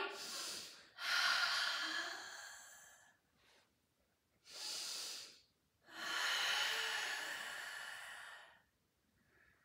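A young woman exhales loudly in long breaths.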